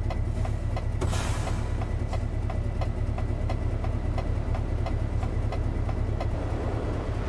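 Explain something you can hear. A truck's indicator ticks in a steady rhythm.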